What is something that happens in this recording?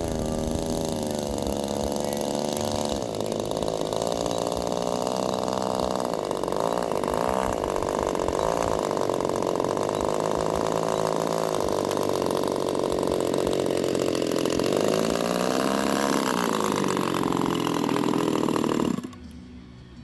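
A small model airplane engine buzzes loudly, its pitch rising and falling as the plane taxis.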